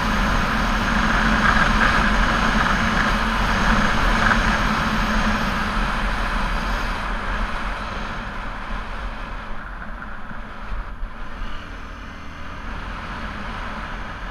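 A motorcycle engine hums steadily and eases off as the bike slows into a bend.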